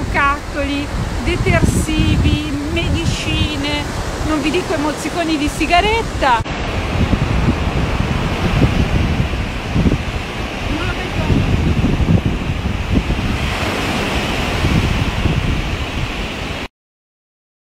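Wind buffets a microphone.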